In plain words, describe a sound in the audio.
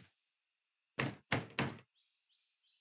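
Knuckles knock on a wooden door.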